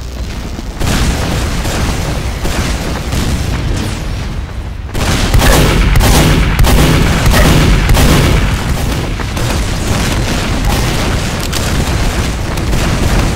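Shotgun blasts boom repeatedly.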